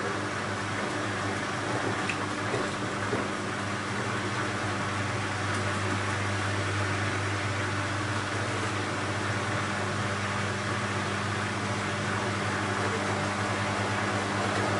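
A washing machine hums steadily as its drum turns.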